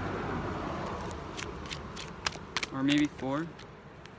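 Playing cards flick and rustle in a man's hands.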